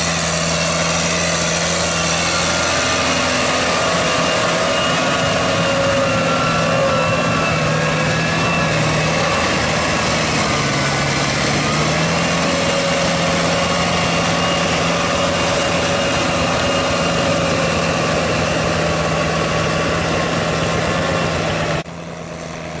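A tractor's tiller churns through wet mud.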